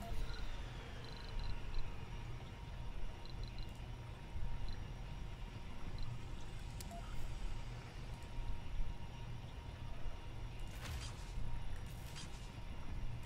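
Short electronic clicks sound as menu items are picked.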